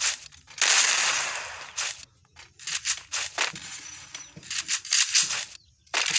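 Footsteps run across a hard floor.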